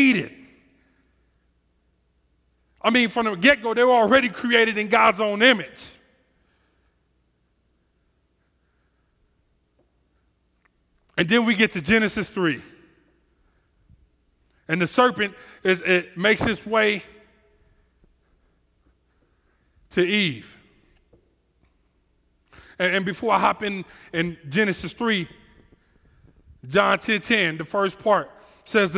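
A man speaks with animation into a headset microphone, in bursts with pauses.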